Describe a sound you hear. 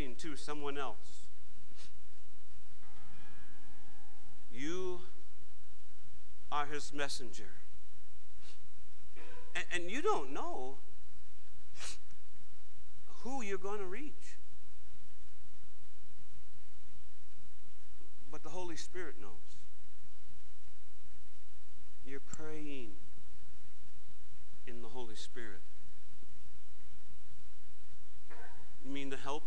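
A man speaks calmly in short phrases through a microphone.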